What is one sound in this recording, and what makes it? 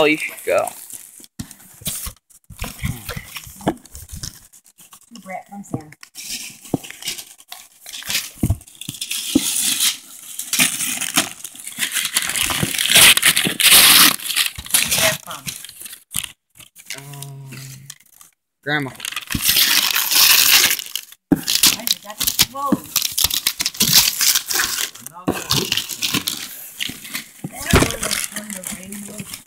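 Wrapping paper rustles and crinkles close by.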